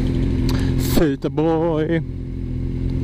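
A motorcycle engine revs sharply once.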